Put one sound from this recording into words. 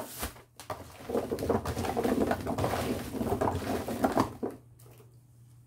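Hands stir through a tub of chopped vegetable cubes, which rustle and clatter softly.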